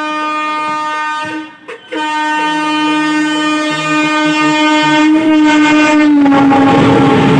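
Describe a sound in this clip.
A train horn blares loudly as an oncoming train approaches, then drops in pitch as it passes.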